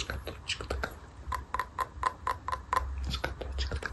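Fingers tap rapidly on a stone lid.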